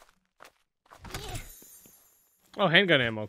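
A magical whoosh bursts out.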